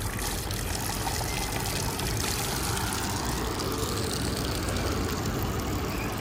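Water trickles steadily from a spout.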